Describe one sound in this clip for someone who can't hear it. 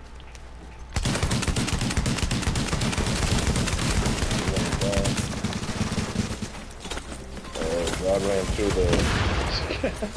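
Rapid gunfire rattles in bursts nearby.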